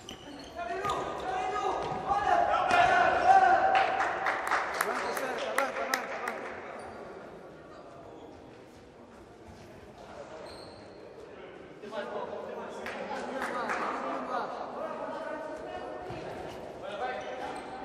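A ball thuds as players kick it in a large echoing hall.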